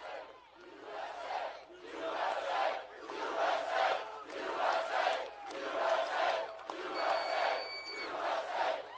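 A large crowd chants in a steady rhythm.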